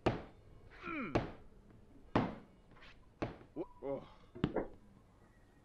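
A hammer clanks sharply against hard objects.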